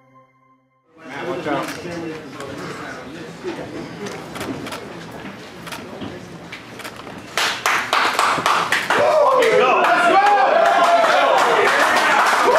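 A crowd of men chatters and shouts in an echoing hall.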